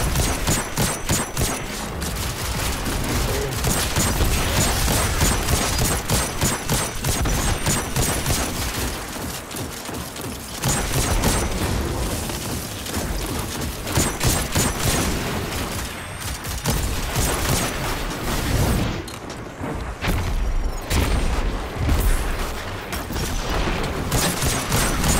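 A rifle fires rapid, sharp shots.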